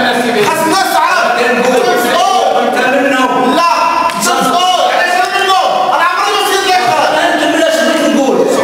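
An elderly man speaks forcefully and with animation through a microphone.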